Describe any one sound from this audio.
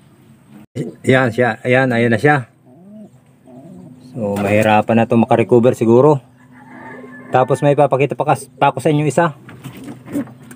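A pigeon coos.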